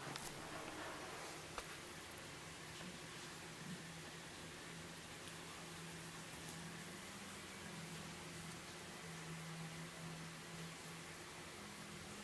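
A kitten paws and tugs at a cord, scuffing softly on carpet.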